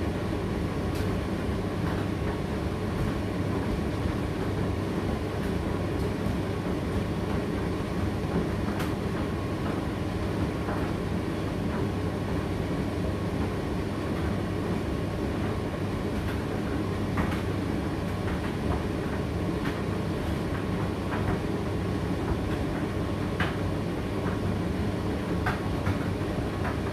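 A condenser tumble dryer hums and rumbles as its drum turns.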